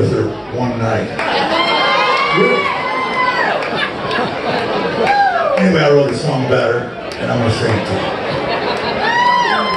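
A man sings through a microphone in a lively voice.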